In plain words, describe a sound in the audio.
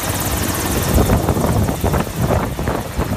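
A helicopter crashes into water with a loud splash.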